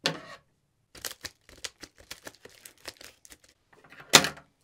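A padded paper envelope rustles and crinkles.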